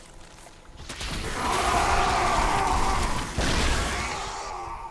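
Small creatures skitter and clash in a busy video game battle.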